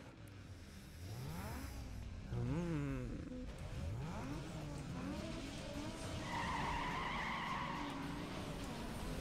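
A car engine revs loudly and roars as it accelerates.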